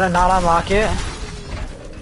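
Gunfire crackles in a game.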